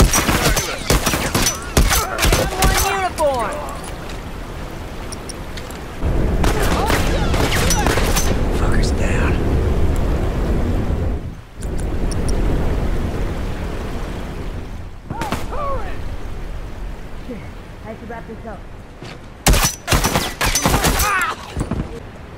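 Rifle gunfire cracks in bursts.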